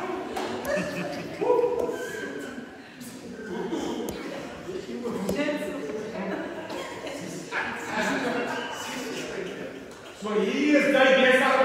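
A middle-aged man speaks with animation close by.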